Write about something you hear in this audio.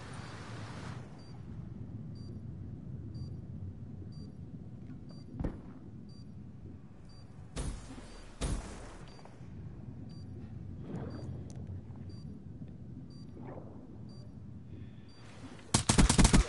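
Water gurgles and swirls, heard muffled from under the surface.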